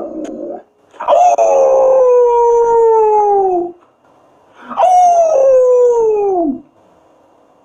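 A dog howls in long falling wails.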